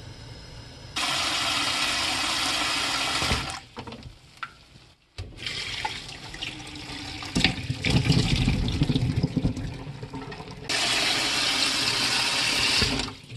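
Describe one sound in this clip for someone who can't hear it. Water runs from a tap into a metal pot.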